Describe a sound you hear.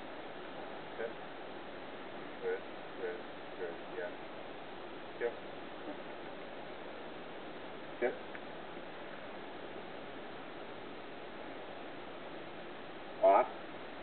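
An elderly man gives short, quiet commands close by.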